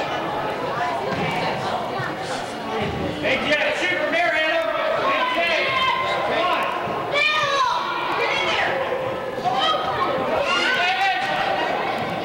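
Children shout and call out across a large echoing hall.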